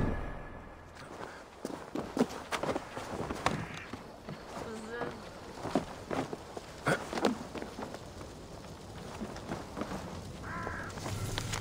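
Footsteps thud and creak on wooden planks.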